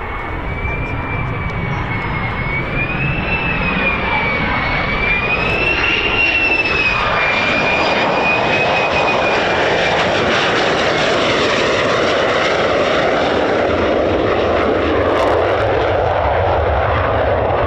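A jet engine roars loudly with a high, wavering whine.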